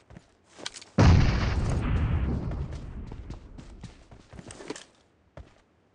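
A grenade explodes loudly with a rumbling blast that slowly fades.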